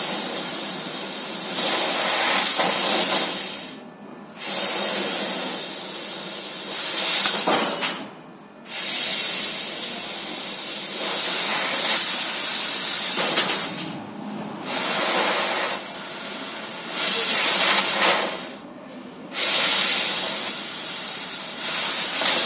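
A cutting machine whirs and hisses steadily, pausing briefly now and then.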